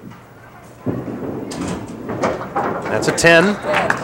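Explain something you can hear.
Pins clatter as a bowling ball strikes them.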